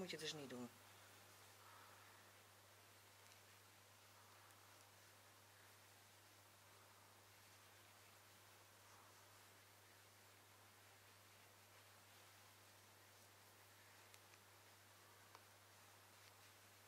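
A cloth bandage rustles softly as it is wrapped around a hand.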